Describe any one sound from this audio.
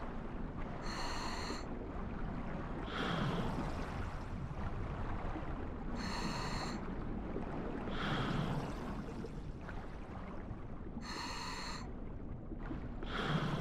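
A muffled underwater rumble drones steadily.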